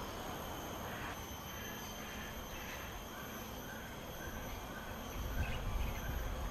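Birds chirp softly nearby.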